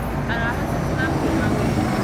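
A bus engine idles close by.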